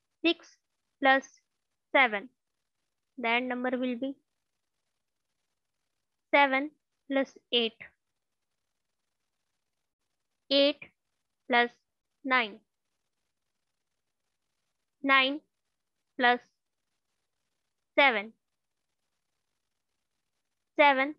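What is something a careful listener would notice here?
A young woman speaks calmly in short phrases over a microphone.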